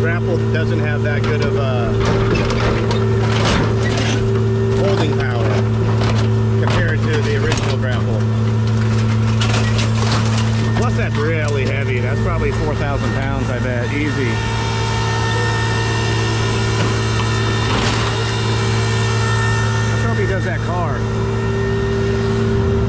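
A heavy diesel engine idles with a steady, low hum.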